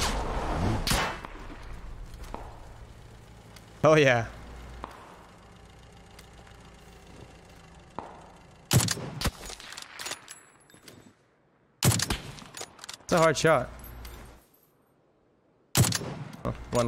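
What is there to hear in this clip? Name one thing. Rifle shots crack sharply, one at a time.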